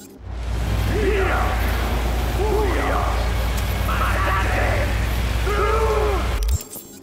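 Car tyres squeal in a skid.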